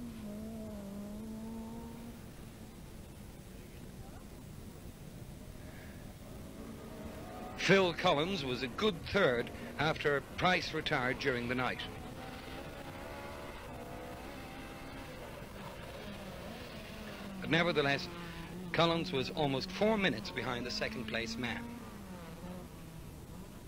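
A rally car engine roars and revs hard as the car speeds past.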